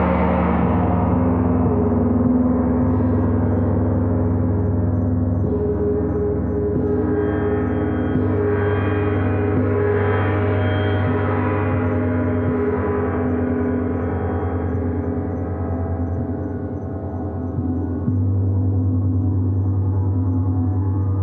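Large gongs hum and shimmer with a deep, swelling resonance.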